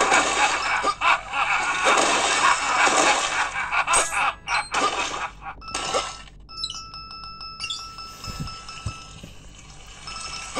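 Fingertips tap lightly on a phone's glass.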